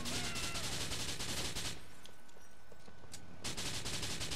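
A gun fires a rapid burst of loud shots.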